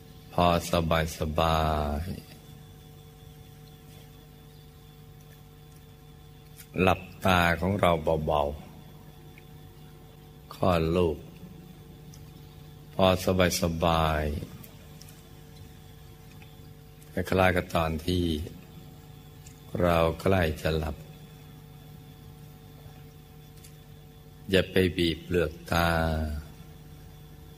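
An elderly man speaks slowly through a microphone, in short phrases with long pauses.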